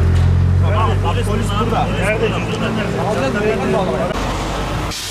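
Several men talk urgently close by.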